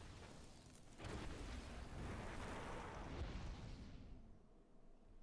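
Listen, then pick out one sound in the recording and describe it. A burst of fire roars and whooshes.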